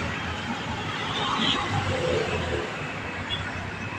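A jeepney rumbles by on the road.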